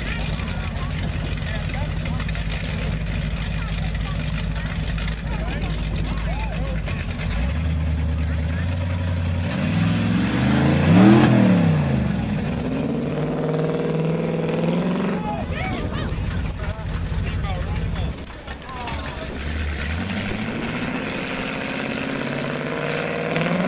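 A big truck engine rumbles and revs loudly nearby.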